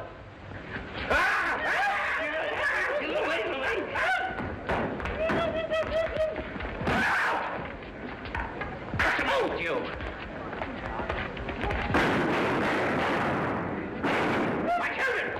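Men shout and yell excitedly.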